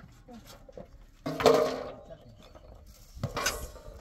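A metal basin clatters as it is set down.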